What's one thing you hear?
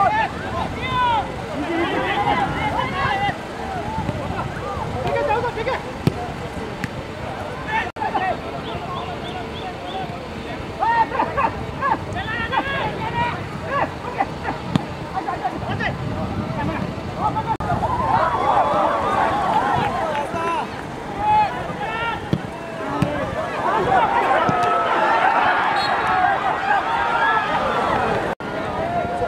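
A large crowd of spectators chatters and shouts outdoors, swelling into cheers at times.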